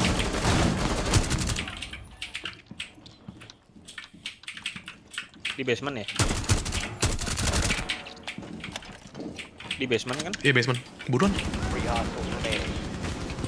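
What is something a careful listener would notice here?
Rapid gunfire cracks at close range.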